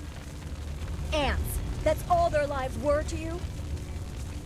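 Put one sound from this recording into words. A woman speaks with indignation.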